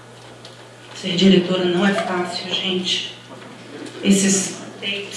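A performer sings loudly, heard through loudspeakers in a large room.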